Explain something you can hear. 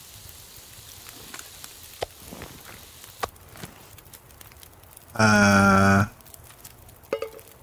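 A campfire crackles.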